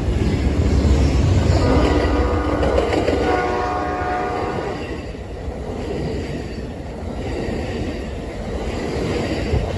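Passenger car wheels clatter and rumble over the rails close by.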